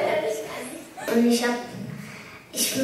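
A young girl speaks quietly into a microphone.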